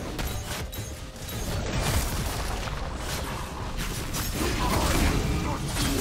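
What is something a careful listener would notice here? Magic spells blast and crackle in a busy video game battle.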